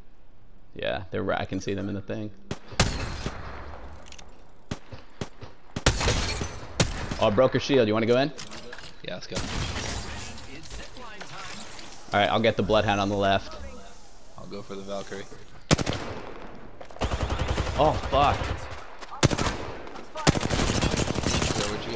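A rifle fires in rapid bursts of gunshots.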